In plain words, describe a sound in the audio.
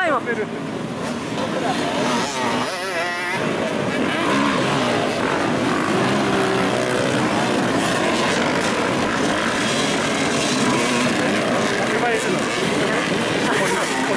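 Dirt bike engines rev and whine loudly, close by.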